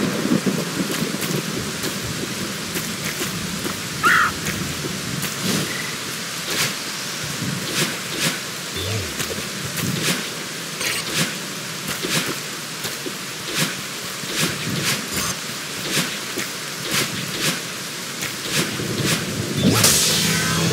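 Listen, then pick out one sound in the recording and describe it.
Soft game sound effects tap in quick succession.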